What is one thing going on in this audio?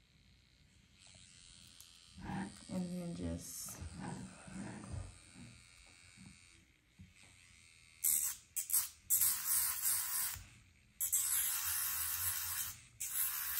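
A small electric nail drill whirs steadily.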